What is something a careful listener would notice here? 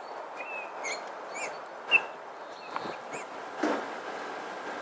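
A magpie pecks and crunches in the snow.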